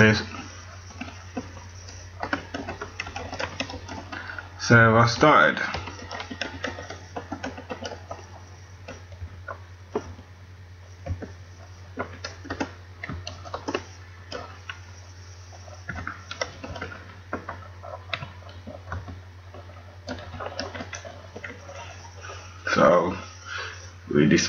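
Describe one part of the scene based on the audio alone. Keyboard keys click as someone types.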